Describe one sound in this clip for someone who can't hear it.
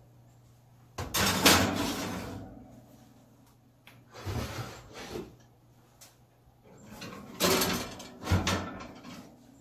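A metal pan scrapes and clanks onto an oven rack.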